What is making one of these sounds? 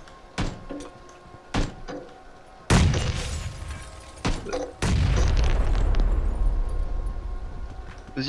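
Footsteps thud on wooden stairs and floorboards.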